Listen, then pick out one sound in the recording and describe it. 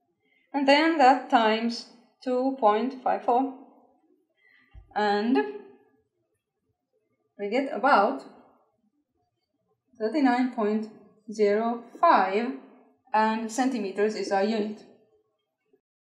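A woman speaks calmly and clearly, explaining as if teaching.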